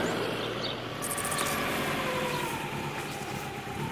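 A brush scrapes snow off a car.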